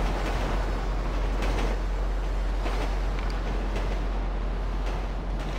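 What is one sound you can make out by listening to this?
A freight train rumbles steadily over a metal bridge.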